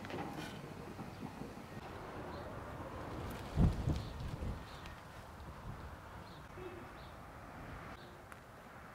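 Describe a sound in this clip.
Leaves rustle as a hand picks plants.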